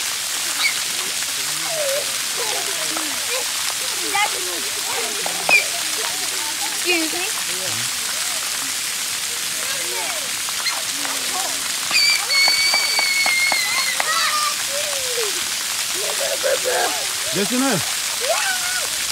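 Young children shout and squeal nearby while playing.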